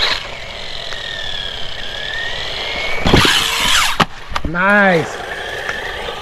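A toy car's electric motor whines, rising and falling in pitch.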